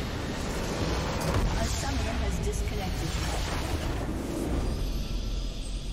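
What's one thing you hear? A base crystal shatters with a deep explosion.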